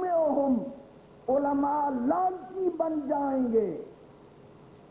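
An elderly man recites with strong feeling into a microphone, his voice heard through loudspeakers.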